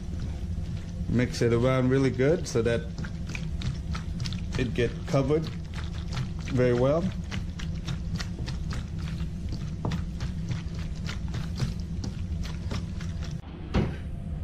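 Hands squish and knead wet meat in a bowl.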